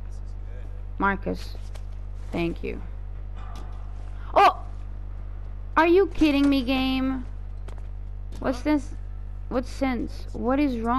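A young woman talks with animation through a microphone.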